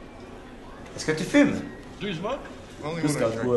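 A man asks a question in a calm voice.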